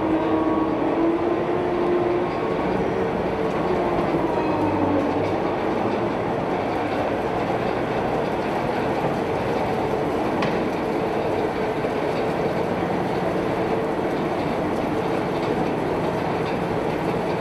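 Steel tracks clatter across a steel deck.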